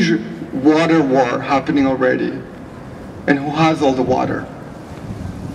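A woman speaks calmly into a microphone outdoors.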